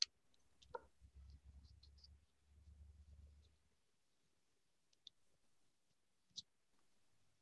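Small wooden discs tap softly on a table.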